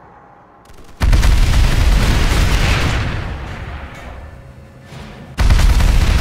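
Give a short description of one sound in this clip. Heavy guns fire in loud rapid bursts.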